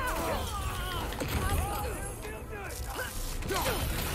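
A magical blast crackles and booms.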